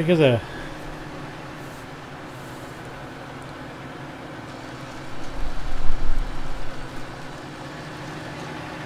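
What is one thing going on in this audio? A harvester engine hums steadily.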